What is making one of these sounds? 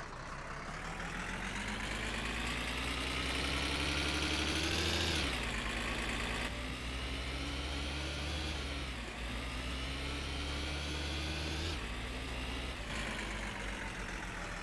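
A car engine revs up and drops as the gears change.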